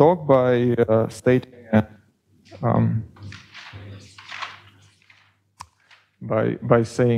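A man lectures calmly through a clip-on microphone.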